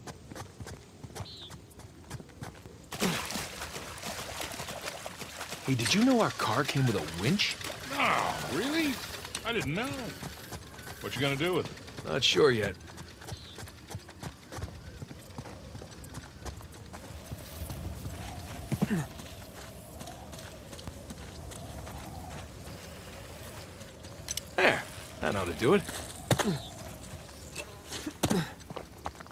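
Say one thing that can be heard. Footsteps thud on dirt and stone steps.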